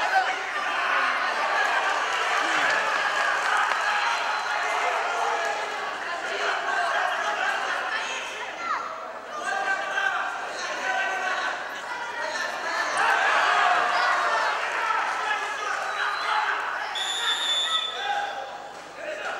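A crowd of young spectators shouts and cheers in an echoing hall.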